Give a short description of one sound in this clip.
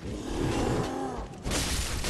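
A heavy creature crashes down onto stone.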